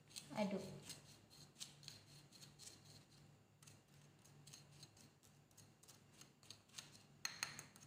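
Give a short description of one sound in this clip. A spoon scrapes and clinks against a plate while stirring.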